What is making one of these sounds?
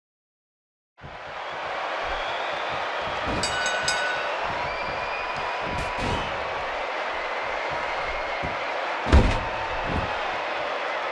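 A large crowd cheers steadily in an echoing arena.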